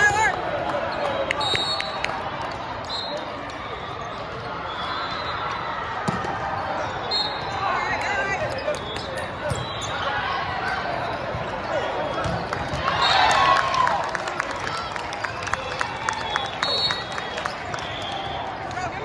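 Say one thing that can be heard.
Many voices of players and onlookers chatter and call out, echoing through a large hall.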